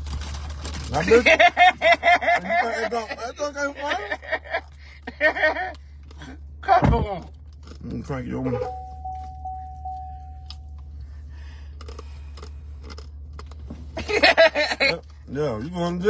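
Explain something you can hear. A young man laughs loudly up close.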